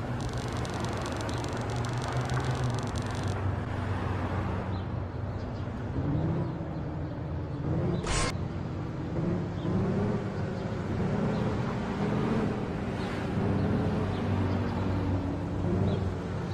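A truck engine rumbles steadily, its pitch rising and falling as it drives.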